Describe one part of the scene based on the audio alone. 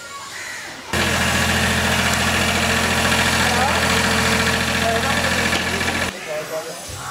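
An excavator engine runs with a steady, loud rumble.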